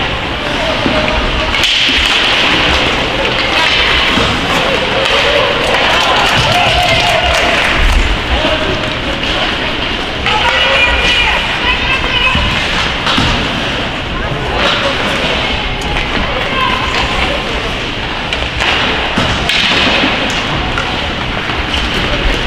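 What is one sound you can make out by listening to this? Hockey sticks clack against a puck on the ice.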